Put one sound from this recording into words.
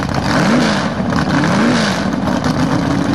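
A race car engine revs up sharply a few times.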